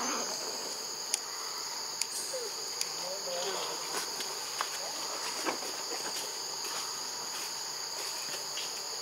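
Leaves rustle as a baby monkey scampers over rock.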